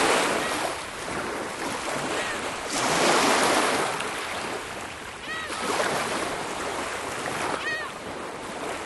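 Small waves wash gently onto a shore and pull back.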